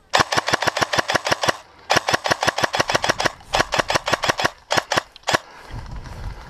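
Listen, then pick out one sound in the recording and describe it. An airsoft gun fires in rapid bursts of sharp clicks.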